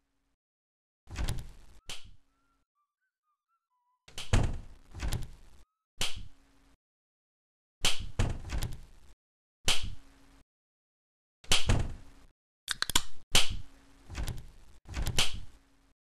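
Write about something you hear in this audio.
A door swings open several times.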